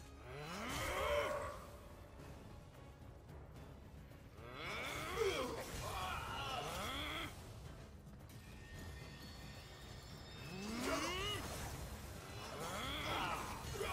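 A blade swishes through the air with a ringing, shimmering whoosh.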